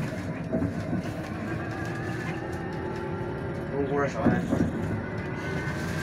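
A vehicle's engine and tyres rumble steadily, heard from inside while driving along a road.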